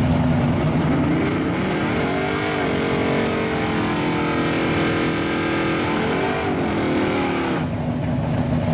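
An engine revs up and down in short bursts.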